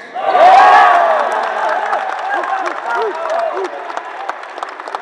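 A large crowd cheers and shouts loudly in an echoing hall, then dies down.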